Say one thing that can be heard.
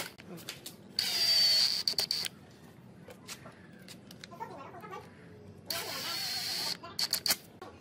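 An electric screwdriver whirs in short bursts, driving screws into wood.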